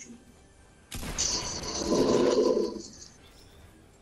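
A video game's teleport effect whooshes and hums.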